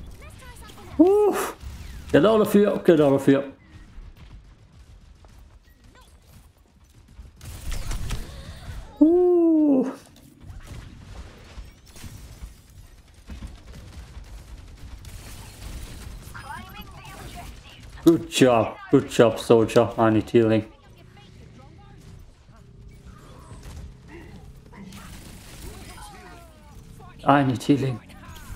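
A young man talks and exclaims with animation close to a microphone.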